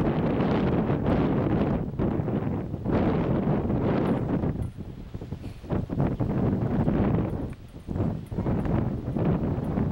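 A horse trots on soft sand.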